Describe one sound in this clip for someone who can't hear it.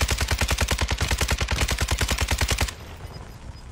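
Automatic gunfire rattles rapidly.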